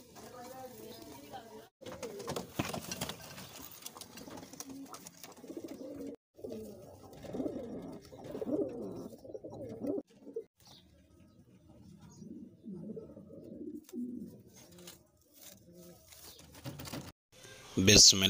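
Pigeons coo with low, throaty rolling calls.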